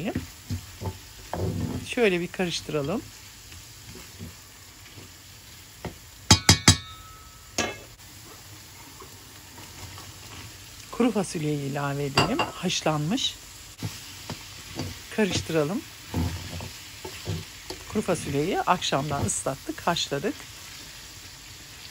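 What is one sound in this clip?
A metal spoon scrapes and stirs a thick sauce in a pan.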